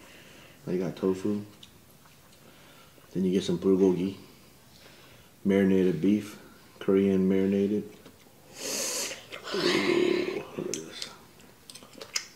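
A boy chews food noisily.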